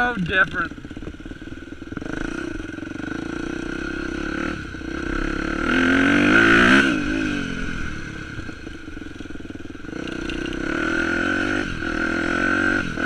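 A dirt bike engine roars up close, revving up and down.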